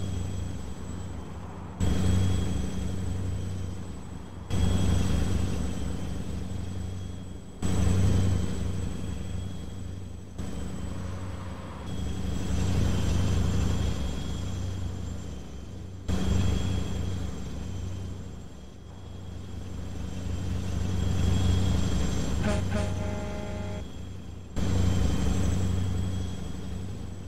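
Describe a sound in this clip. A truck engine drones steadily, swelling and dropping as the gears shift.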